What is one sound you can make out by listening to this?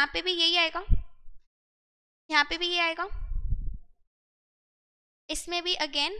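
A young woman speaks calmly into a close microphone, with pauses.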